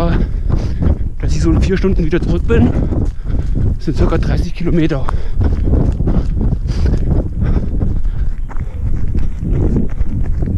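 Footsteps thud steadily on a dirt trail.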